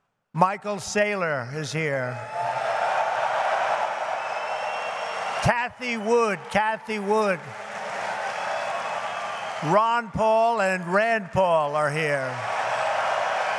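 An elderly man speaks loudly and emphatically through a microphone, in short bursts.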